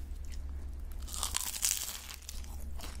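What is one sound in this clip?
A young woman bites into crisp pastry close to the microphone.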